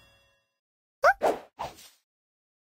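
Short bright game sound effects play as new jewels drop in.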